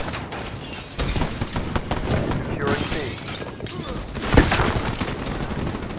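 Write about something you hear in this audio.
A rifle fires single shots.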